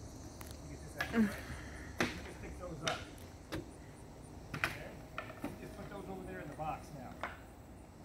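Wooden boards clatter as they are knocked down and stacked.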